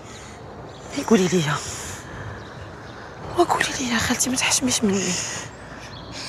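A young woman speaks anxiously up close.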